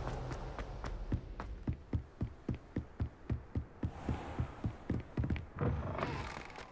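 Running footsteps thud on wooden boards.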